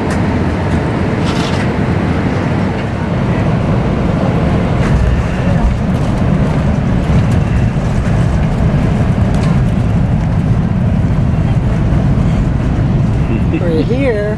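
An airliner's jet engines roar loudly and steadily from inside the cabin.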